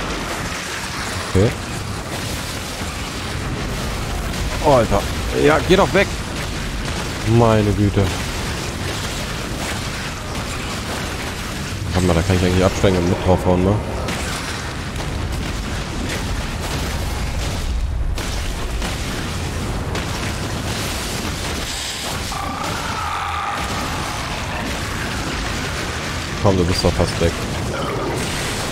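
Swords clang and slash in a fight.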